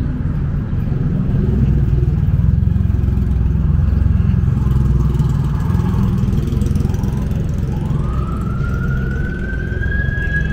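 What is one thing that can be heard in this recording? Vehicles drive past close by.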